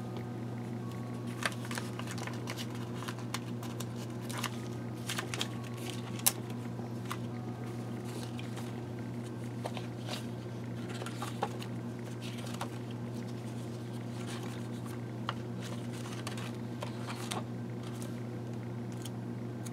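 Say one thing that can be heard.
Plastic sheets crinkle and click under handling.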